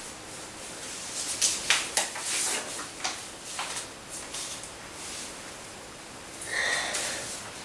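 Paper rustles and crackles as sheets are handled.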